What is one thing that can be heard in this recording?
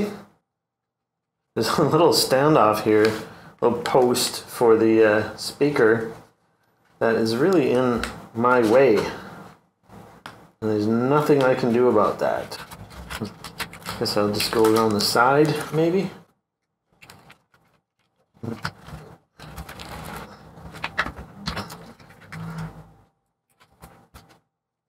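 Gloved hands rustle and tap on a laptop's metal case.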